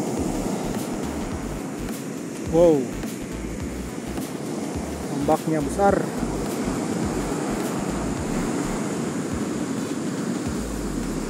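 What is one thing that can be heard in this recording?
Waves crash and wash onto a beach outdoors in the wind.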